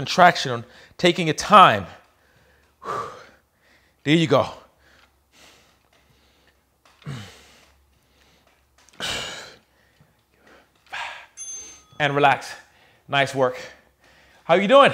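A man speaks in short, strained bursts.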